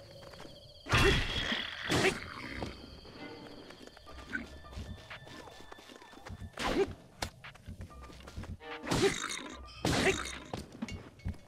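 A heavy weapon strikes a creature with loud thuds.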